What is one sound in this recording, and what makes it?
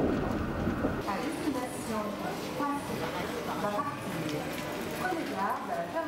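A crowd of adults chatters in a large echoing hall.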